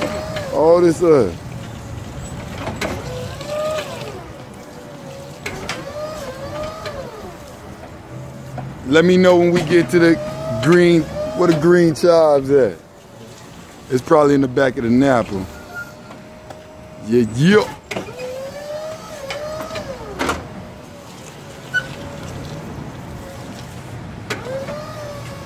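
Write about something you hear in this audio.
An electric forklift motor hums and whines as it drives and lifts.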